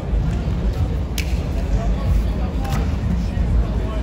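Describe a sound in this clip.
A body thumps onto a mat.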